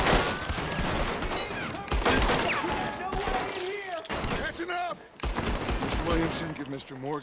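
Gunshots ring out rapidly, one after another.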